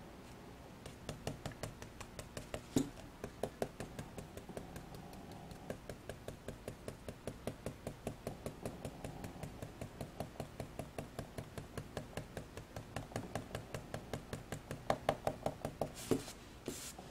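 A foam blending tool dabs rapidly against paper with soft, quick taps.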